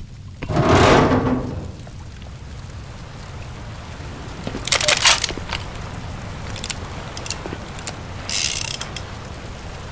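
Water splashes loudly in short bursts.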